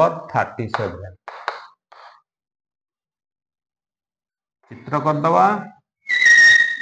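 A middle-aged man speaks calmly and close by, in short phrases.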